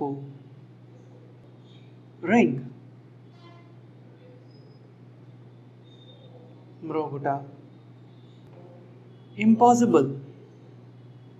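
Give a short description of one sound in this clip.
A man speaks calmly and clearly into a close microphone, saying single words with pauses between them.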